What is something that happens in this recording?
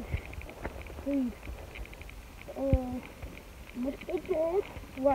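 A young boy talks briefly nearby.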